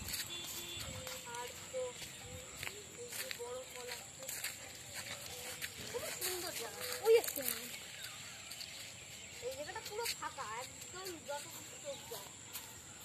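A young boy calls out nearby, outdoors.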